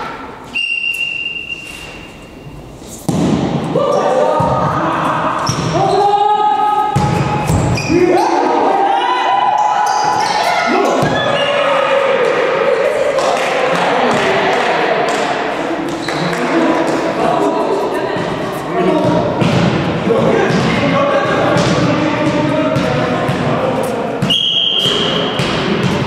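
A referee's whistle blows short, sharp blasts.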